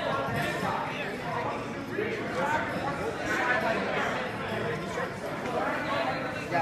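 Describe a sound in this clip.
Many children chatter and call out in a large echoing hall.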